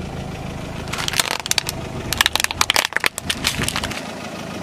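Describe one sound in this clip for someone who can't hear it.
A plastic toy car cracks and crunches under a rolling tyre.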